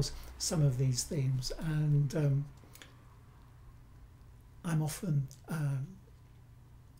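An older man speaks with animation close to a microphone.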